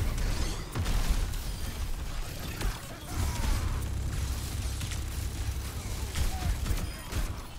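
Explosions burst and crackle nearby.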